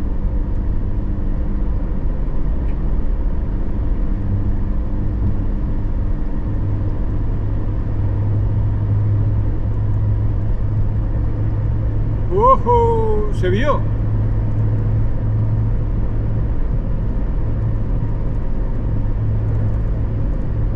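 A car drives steadily along a road with a low, constant rumble.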